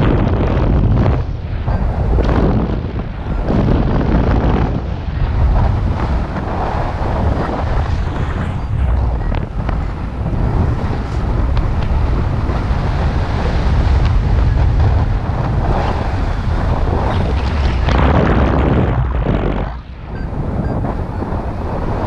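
Strong wind rushes and buffets loudly past the microphone.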